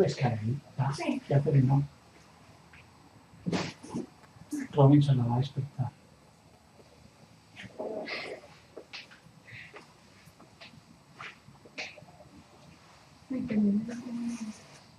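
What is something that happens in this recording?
A middle-aged woman murmurs softly and drowsily close by.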